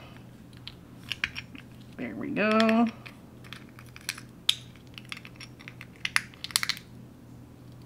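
Long fingernails click and tap against each other.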